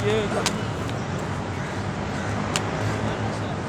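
Sandals patter on hard pavement as a small child walks.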